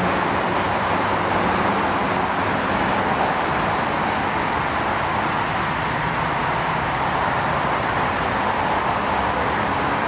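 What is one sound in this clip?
Footsteps of several people pass along a paved path.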